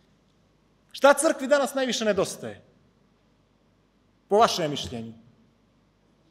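A man speaks calmly into a microphone, with short pauses.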